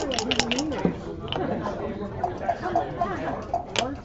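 Dice clatter onto a wooden board.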